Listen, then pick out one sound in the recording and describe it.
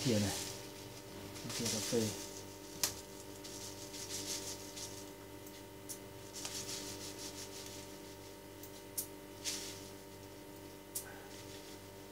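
Powder pours from a paper packet into a pot.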